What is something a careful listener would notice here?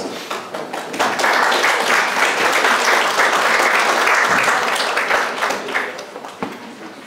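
A crowd applauds in a room.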